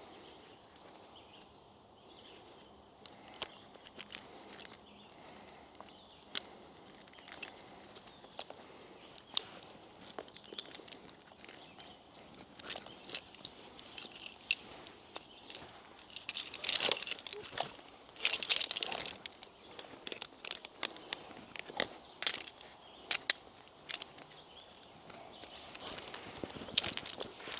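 Climbing gear clicks and clinks against a tree trunk.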